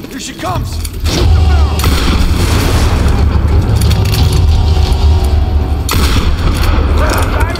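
An explosion booms and flames roar.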